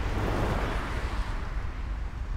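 A car drives along a road.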